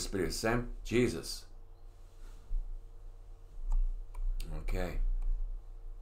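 An elderly man reads aloud calmly into a microphone.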